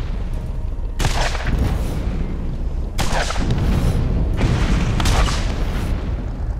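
Explosions boom in sharp bursts.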